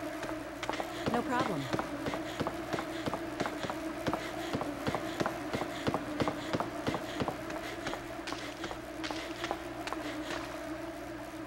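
Footsteps tap down stone stairs at a steady pace.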